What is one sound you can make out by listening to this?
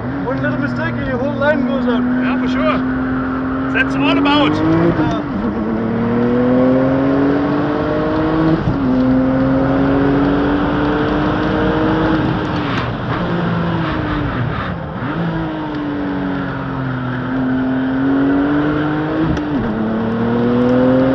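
A car engine roars loudly, revving up through the gears and dropping between shifts.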